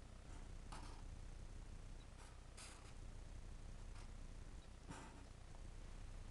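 A marker pen scratches softly on paper.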